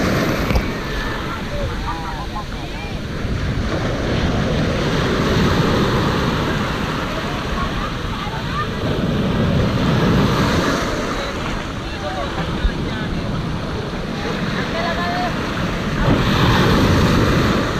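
Waves crash and foam close by in steady rushing surf.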